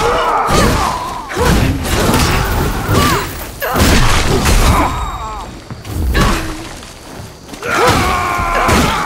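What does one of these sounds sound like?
Heavy weapon blows land with sharp thuds and clangs.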